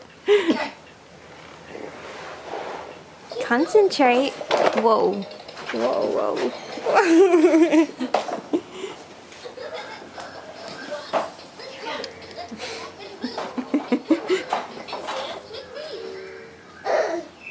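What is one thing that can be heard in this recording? A young woman talks and coos cheerfully to a baby close by.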